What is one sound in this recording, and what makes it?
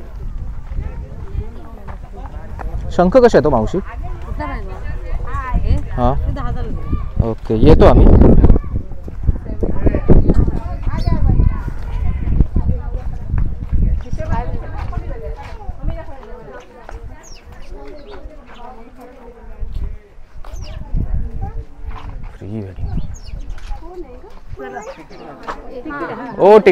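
Women and men chatter nearby outdoors.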